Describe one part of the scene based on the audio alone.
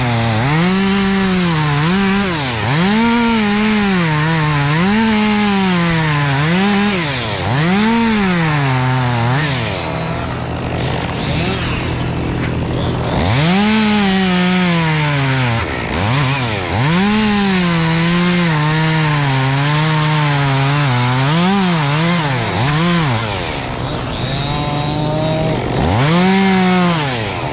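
A chainsaw engine revs and whines as it cuts through wood, rising and falling in pitch.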